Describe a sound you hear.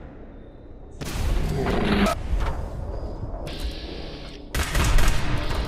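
A rifle fires with loud, echoing blasts.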